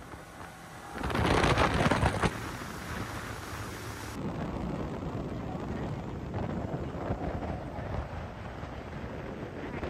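Water rushes and splashes past a speeding boat.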